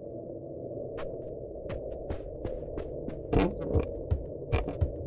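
Footsteps knock on wooden boards.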